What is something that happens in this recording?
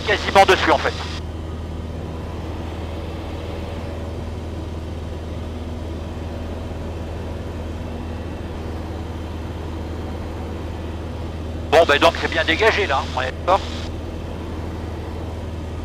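A small plane's engine drones steadily throughout.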